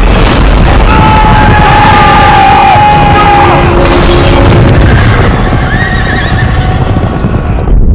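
Horses gallop in a thundering charge.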